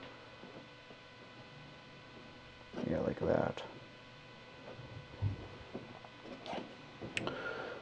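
A small plastic figure taps softly on a tabletop.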